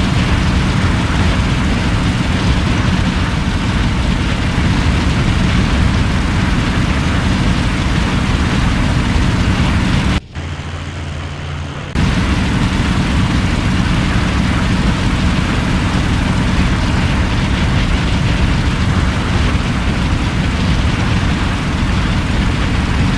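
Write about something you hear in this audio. Wind rushes past a plane in flight.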